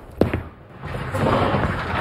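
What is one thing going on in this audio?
Bowling pins crash as a ball strikes them.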